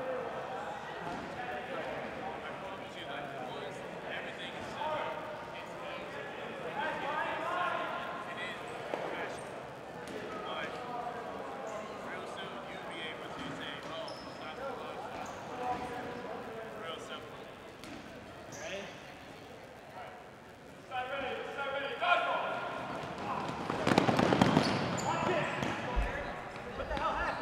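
Young men talk and chatter nearby in a large echoing gym.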